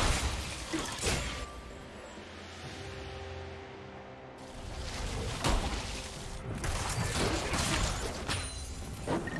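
Magic spells blast and crackle in a fast fight.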